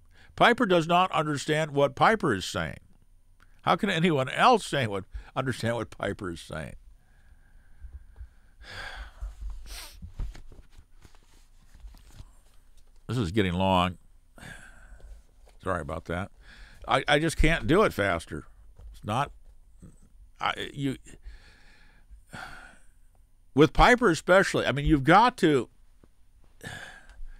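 An elderly man speaks calmly and closely into a microphone, in bursts with pauses.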